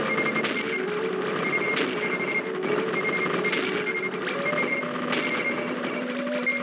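Electronic music plays with a bright, upbeat melody.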